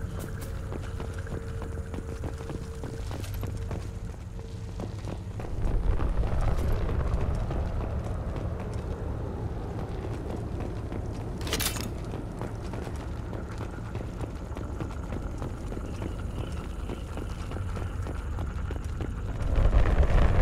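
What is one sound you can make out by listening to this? Footsteps clank on metal floors and stairs.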